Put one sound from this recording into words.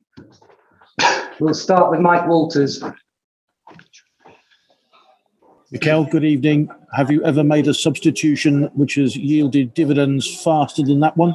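A man speaks calmly into a microphone, heard close.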